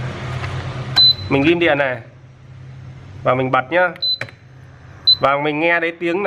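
An electronic appliance beeps briefly when its buttons are pressed.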